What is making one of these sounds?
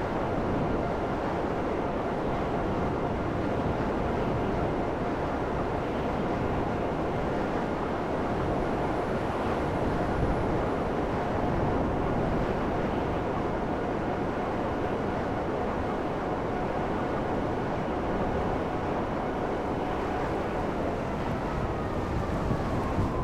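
A jet-powered hoverbike engine roars steadily.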